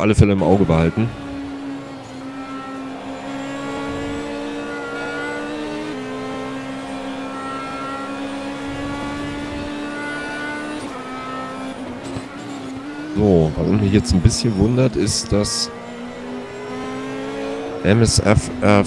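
A racing car engine whines steadily at high revs, shifting pitch as gears change.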